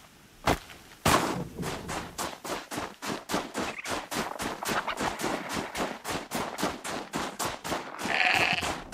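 Snow hisses as a figure slides quickly down a slope.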